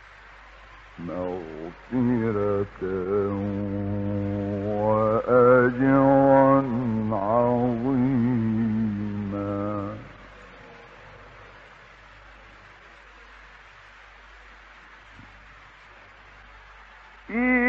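A man chants slowly in a long, wavering melody, heard through an old, hissy recording.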